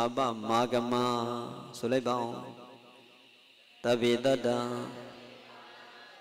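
A man chants loudly into a microphone, with echo trailing off.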